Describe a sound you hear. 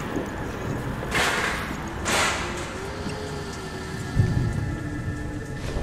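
Footsteps tread across a hard floor.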